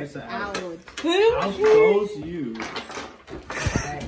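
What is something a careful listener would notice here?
A young woman laughs and exclaims excitedly.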